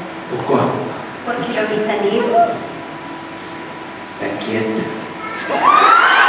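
A young man speaks through a microphone over loudspeakers in a large hall.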